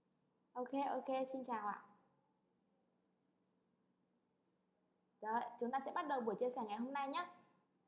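A young woman speaks with animation into a nearby microphone.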